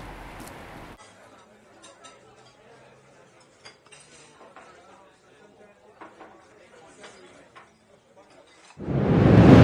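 A spoon clinks softly against a bowl.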